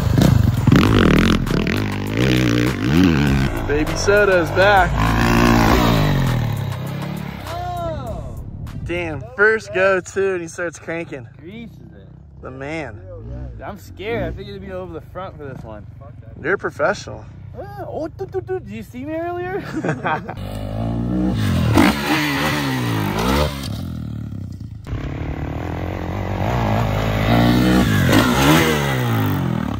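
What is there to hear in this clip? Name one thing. A dirt bike engine revs loudly, rising and falling in pitch.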